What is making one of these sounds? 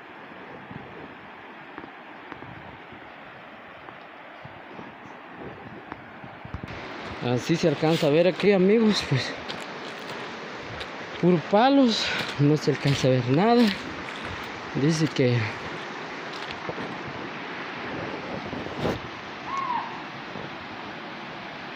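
A river flows and rushes over rocks outdoors.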